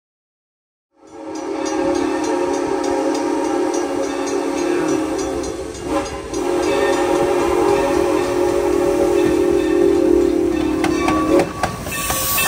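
A steam train's whistle blows long and steady in the distance.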